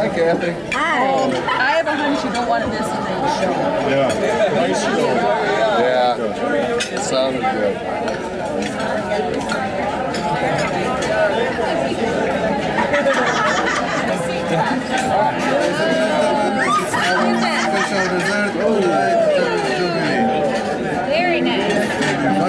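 Many people chatter at once in a busy, crowded room.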